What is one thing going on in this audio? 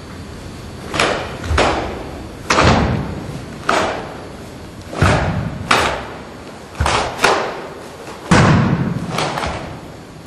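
A karate uniform snaps sharply with each fast strike, ringing in an echoing hall.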